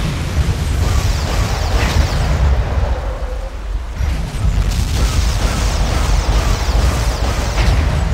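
An energy weapon fires with crackling electric blasts.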